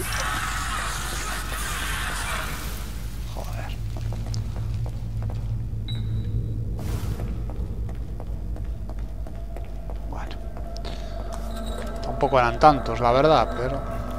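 Footsteps scuff slowly on a hard floor.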